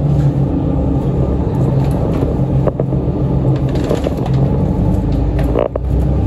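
Footsteps walk away across a hard floor.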